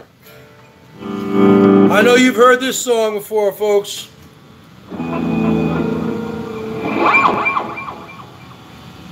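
An electric guitar plays a few ringing notes.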